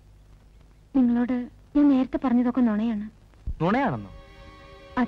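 A young woman speaks softly.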